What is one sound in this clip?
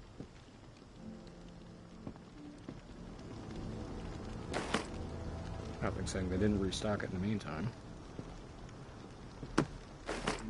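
Footsteps scuff slowly on pavement.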